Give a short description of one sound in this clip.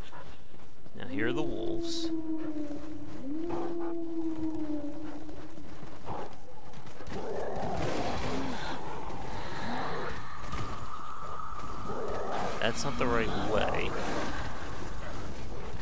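A wolf snarls and growls close by.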